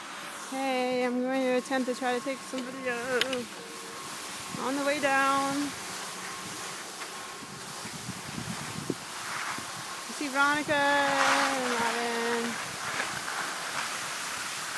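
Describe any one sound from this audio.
Skis scrape and hiss over packed snow.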